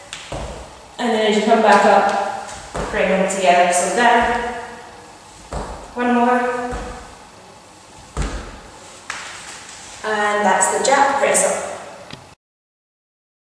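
A young woman speaks calmly and clearly, close to a microphone.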